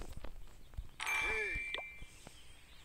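A game chime rings as a menu opens.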